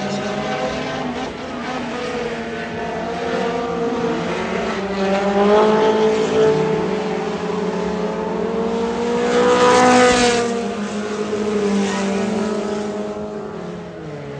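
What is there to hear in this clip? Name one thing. Race car engines roar and whine as the cars speed around a dirt track outdoors.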